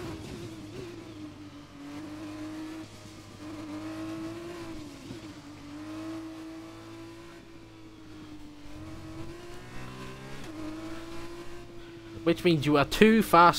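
A racing car engine hums steadily at low speed, rising and falling in pitch.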